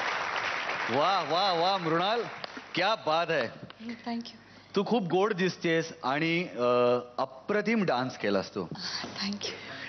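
A young woman speaks cheerfully into a microphone.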